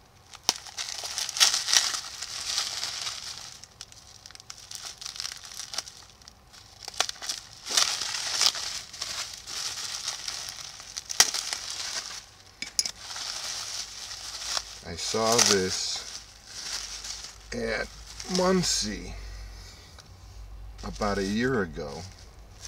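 Plastic bubble wrap crinkles and rustles as it is handled.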